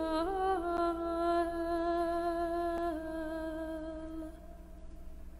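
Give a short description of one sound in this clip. A man sings a long, steady note that echoes in a large hall.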